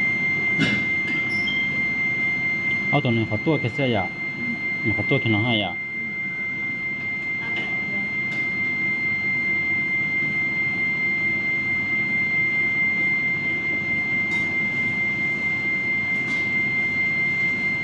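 A machine gives off a steady high-pitched tone.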